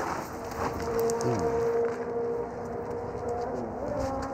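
Footsteps tread on a pavement.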